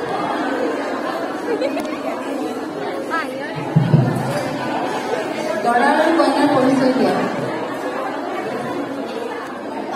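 A girl speaks into a microphone over a loudspeaker in an echoing hall.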